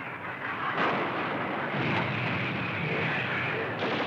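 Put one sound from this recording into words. A shell explodes with a heavy blast.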